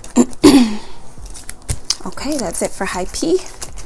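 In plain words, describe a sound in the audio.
A plastic cover crinkles and rustles as hands handle it.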